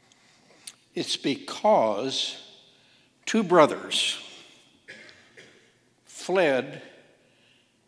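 An elderly man speaks slowly into a microphone in a large echoing hall.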